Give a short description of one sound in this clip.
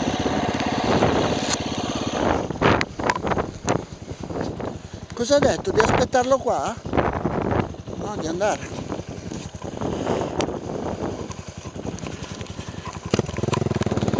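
A motorcycle engine idles close by with a rapid putter.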